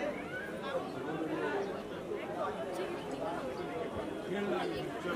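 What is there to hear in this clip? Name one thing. A middle-aged woman talks nearby.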